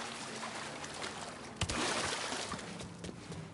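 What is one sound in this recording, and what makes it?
Water splashes as a swimmer climbs out of a pool.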